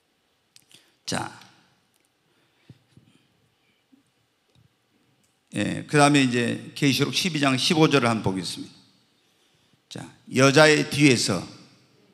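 A middle-aged man preaches with feeling into a microphone.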